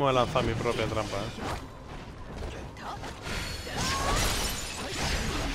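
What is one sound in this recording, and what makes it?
Swords slash and clash in a fight.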